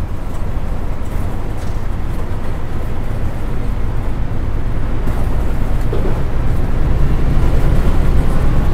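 A bus engine rumbles steadily and grows louder as the bus pulls away.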